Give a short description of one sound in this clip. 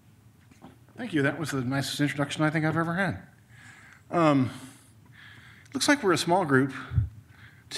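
A man speaks calmly into a microphone, heard through loudspeakers in a large echoing hall.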